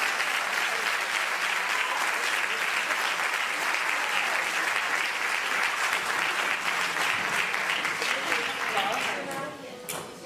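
A plucked string orchestra plays a lively tune in a large hall.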